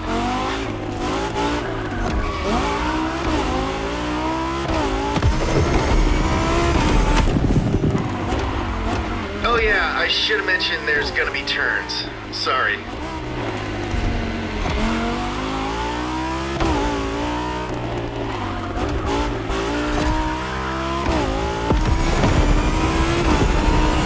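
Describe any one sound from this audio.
A sports car engine roars, revving up and dropping as it shifts gears.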